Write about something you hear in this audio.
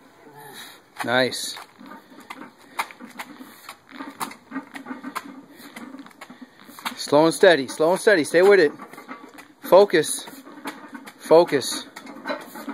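A man grunts and strains loudly with effort.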